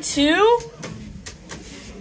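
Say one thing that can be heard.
A finger clicks an elevator button.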